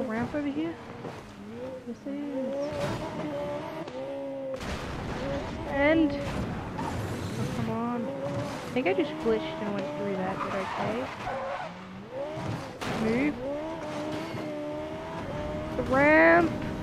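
A racing car engine revs high, rising and dropping with each gear change.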